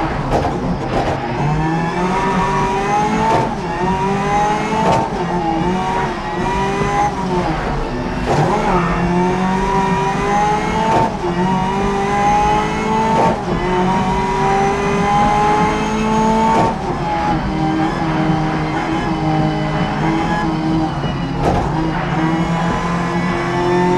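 A racing car engine revs hard, rising in pitch through each gear and dropping at every gear change.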